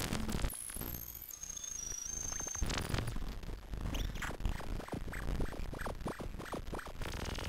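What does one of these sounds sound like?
A modular synthesizer plays beeping, chirping electronic tones.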